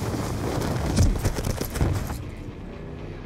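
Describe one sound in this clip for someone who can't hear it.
Explosions boom and debris crashes nearby.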